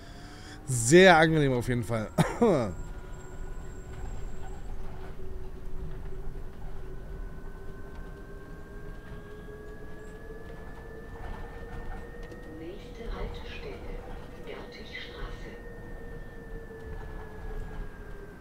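A bus motor whines steadily as the bus drives along.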